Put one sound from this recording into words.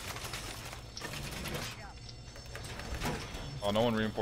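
A metal barricade clanks and rattles into place.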